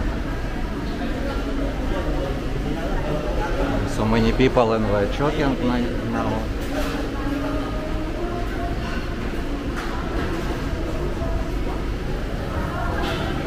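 A crowd of people chatters in a busy, echoing room.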